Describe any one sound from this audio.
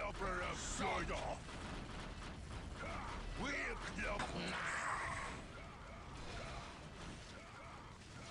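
Gunfire and explosions crackle in a battle.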